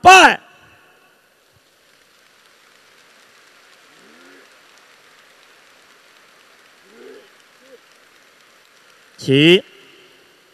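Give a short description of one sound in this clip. A large audience murmurs softly in a big echoing hall.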